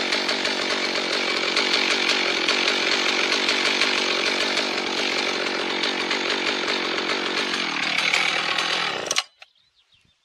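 A chainsaw engine roars loudly close by, then cuts out.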